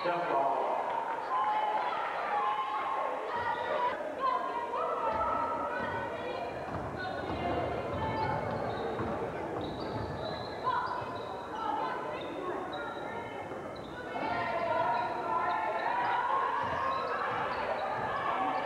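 A crowd of spectators cheers and shouts throughout, echoing in a large hall.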